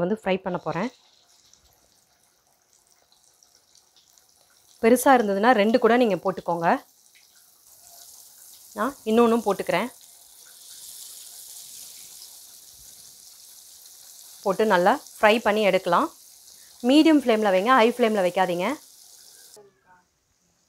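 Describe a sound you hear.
Hot oil sizzles and crackles steadily in a frying pan.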